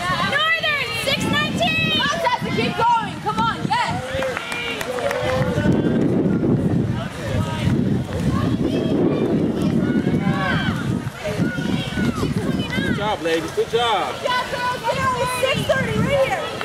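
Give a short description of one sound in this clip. A crowd of spectators cheers and shouts encouragement outdoors.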